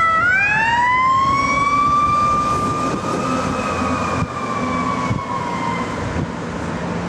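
A siren rises in pitch and wails, then fades.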